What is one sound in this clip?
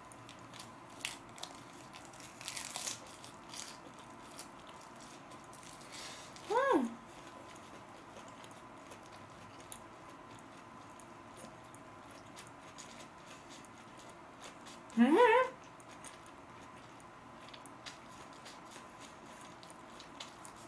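A young woman chews food close to a microphone with soft wet crunching sounds.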